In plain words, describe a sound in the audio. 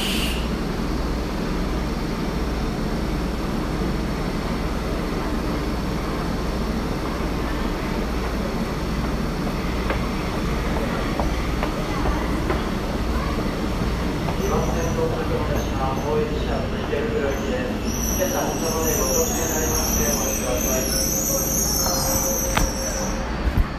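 A stopped underground train hums steadily, echoing in a tunnel.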